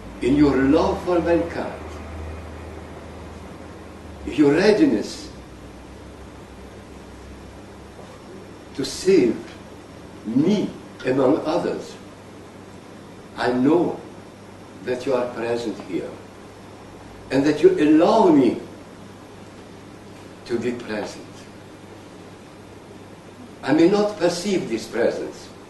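An elderly man speaks slowly and calmly, in short phrases with pauses.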